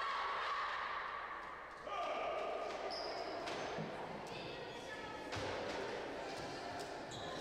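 Players slap hands in a row of handshakes in an echoing hall.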